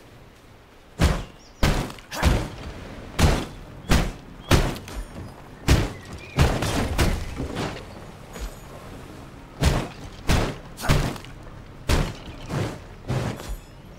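Heavy blows thud and crash in quick succession.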